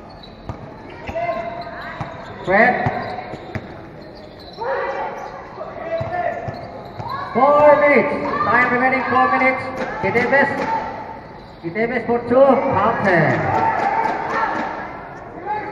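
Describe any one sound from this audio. Young players shout to each other across an echoing court.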